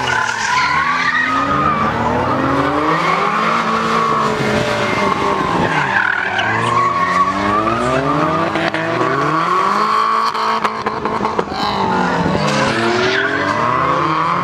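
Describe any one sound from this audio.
A car engine revs hard, rising and falling sharply in pitch.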